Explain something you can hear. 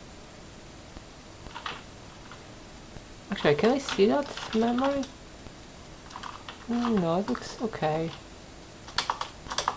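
Keys clack on a computer keyboard.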